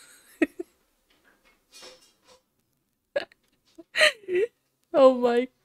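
A young woman speaks playfully into a close microphone, in short bursts.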